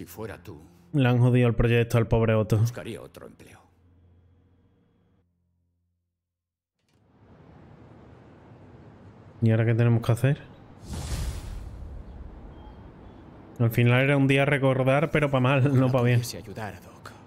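A man talks into a microphone with animation.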